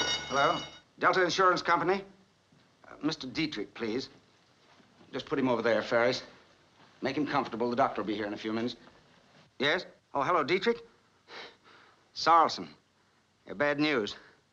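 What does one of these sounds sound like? A middle-aged man talks calmly into a telephone close by.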